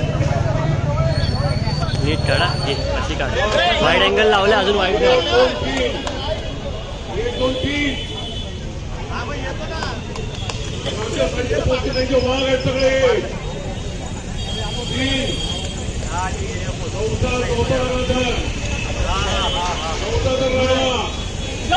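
A crowd of men cheers and shouts over one another.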